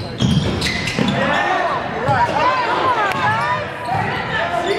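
Sneakers squeak sharply on a wooden court in an echoing gym.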